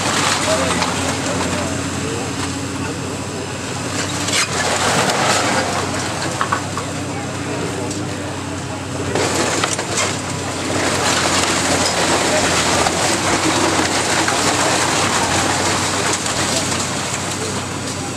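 Rubble crashes and clatters as a building is torn down.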